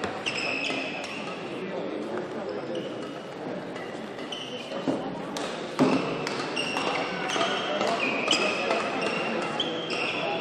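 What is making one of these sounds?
Sports shoes squeak sharply on a hard court floor.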